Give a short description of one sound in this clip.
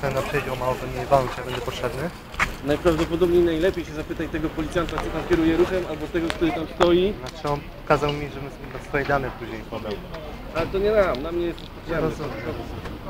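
A man talks close by with animation.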